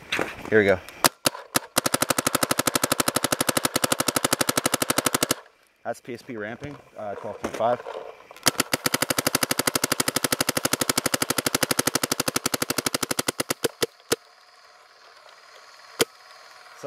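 A paintball marker fires in rapid bursts of sharp pops.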